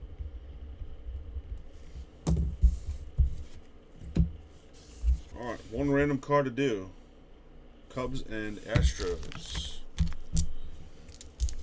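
Plastic card sleeves rustle and slide as they are handled.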